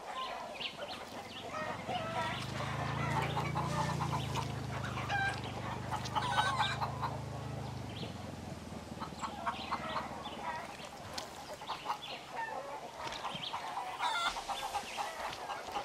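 Footsteps walk over dirt and grass.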